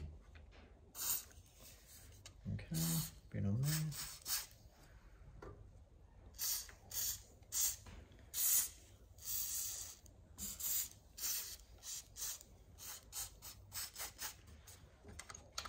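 An aerosol can sprays in short hissing bursts.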